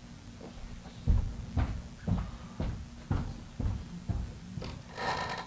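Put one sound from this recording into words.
Footsteps thud on a wooden stage.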